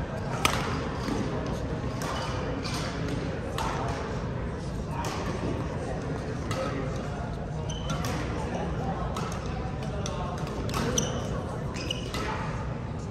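Shuttlecocks are struck with sharp pops from rackets, again and again.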